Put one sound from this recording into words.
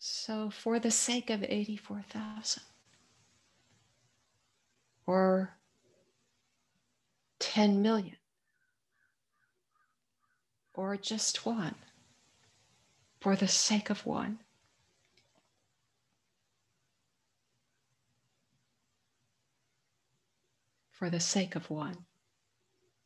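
An older woman speaks calmly in short phrases over an online call.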